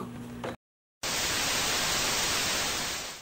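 Loud static hiss crackles steadily.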